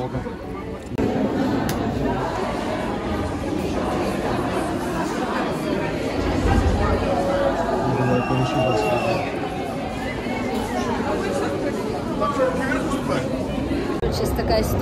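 A dense crowd of men and women chatters loudly in an echoing hall.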